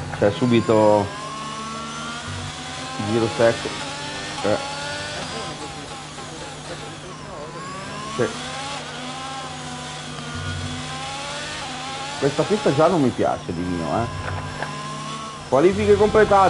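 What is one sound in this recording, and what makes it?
A racing car engine revs up and down through the gears.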